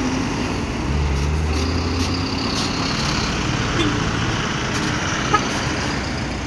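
A bus engine rumbles as the bus drives close by and turns.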